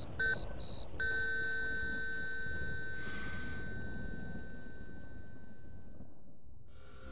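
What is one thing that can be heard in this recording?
A heart monitor sounds one long, steady tone.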